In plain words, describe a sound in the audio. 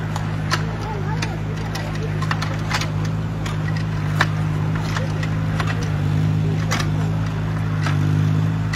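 A diesel mini excavator's engine runs.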